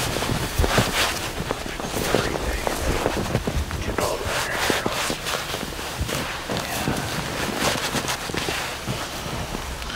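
Hands rustle and scrape through an animal's fur.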